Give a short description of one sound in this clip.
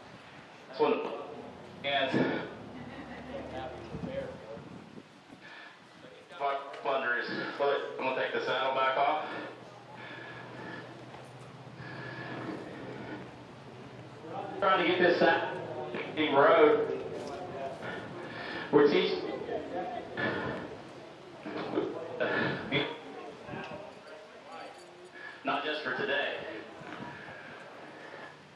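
A man talks calmly, heard close through a microphone.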